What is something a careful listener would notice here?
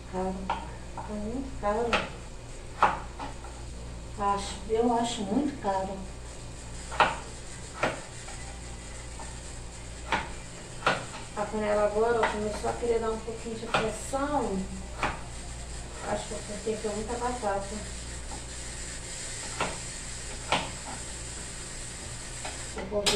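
A knife taps on a cutting board as potatoes are chopped.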